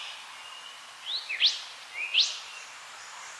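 A bird sings loud rising whistled notes close by.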